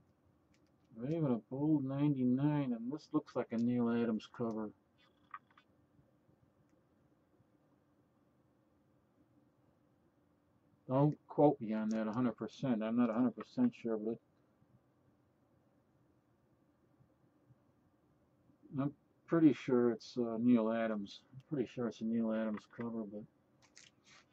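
An older man speaks calmly and close by, in short bursts with pauses.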